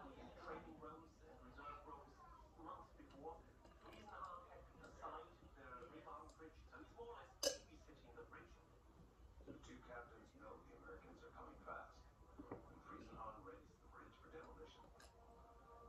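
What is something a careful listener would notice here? A young boy gulps down a drink.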